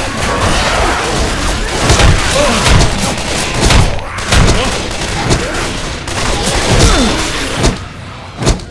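Heavy blows thud and smack against bodies in quick succession.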